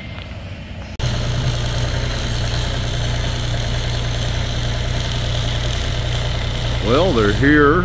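An arc welder crackles and hums nearby.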